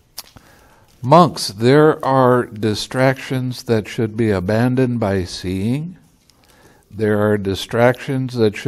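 An elderly man reads aloud calmly into a close microphone.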